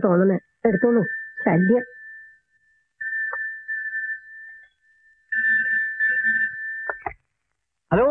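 A telephone rings.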